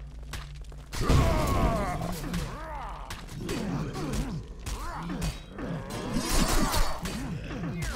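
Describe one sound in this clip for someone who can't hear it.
Weapons clash and strike in a noisy fight.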